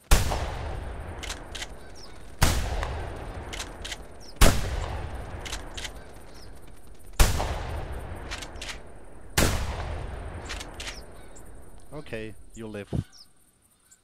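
A shotgun fires loud blasts that echo and roll away.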